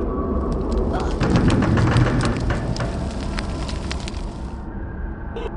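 Quick footsteps tap on a stone floor.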